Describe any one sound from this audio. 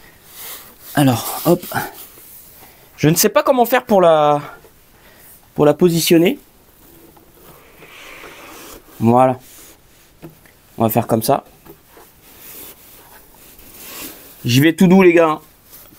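A man speaks calmly nearby, in short bursts.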